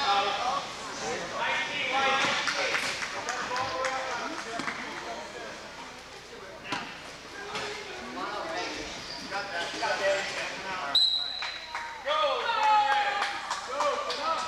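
Several men shout and call out to each other in a large echoing gym.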